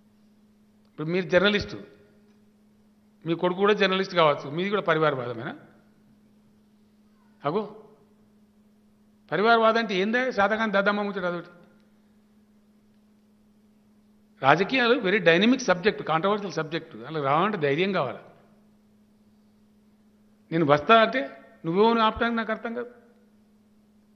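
An elderly man speaks into a microphone in short, deliberate bursts with pauses between them.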